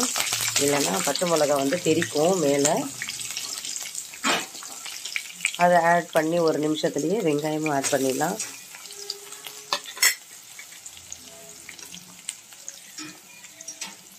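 A metal spatula scrapes against a pan.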